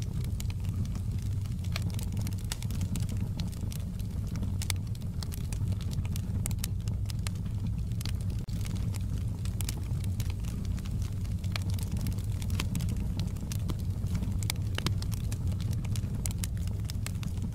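Flames roar with a low steady rumble.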